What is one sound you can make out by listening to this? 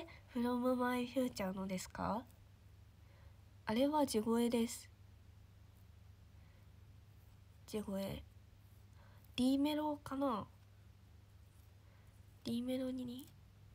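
A young woman sings softly in short phrases, close to a microphone.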